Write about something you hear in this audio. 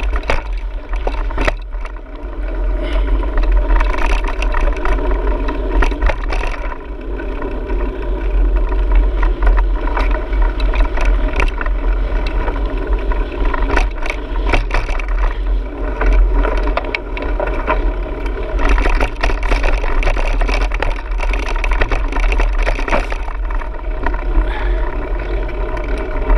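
Tyres roll and crunch steadily over a dirt trail.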